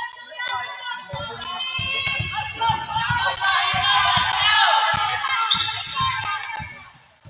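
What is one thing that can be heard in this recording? A volleyball is struck with dull thuds.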